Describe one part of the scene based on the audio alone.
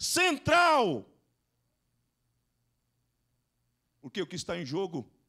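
A man speaks with emotion into a microphone, heard through a loudspeaker.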